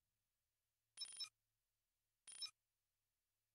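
Short soft interface blips sound twice.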